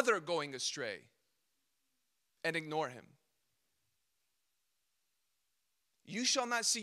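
A young man speaks calmly through a microphone, in short phrases with pauses.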